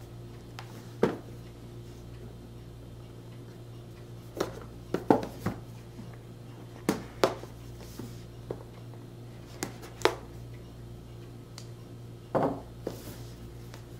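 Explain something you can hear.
A cardboard box knocks and scrapes on a table as hands turn it over.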